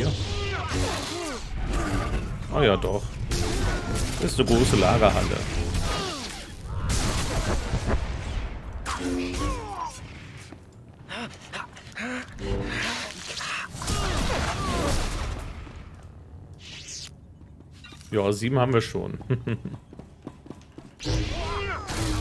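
Lightsabers hum and clash in a fight, with electronic zaps.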